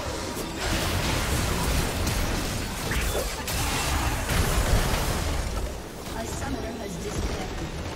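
Game spell effects crackle and clash in a busy battle.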